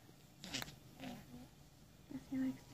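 A newborn baby whimpers softly.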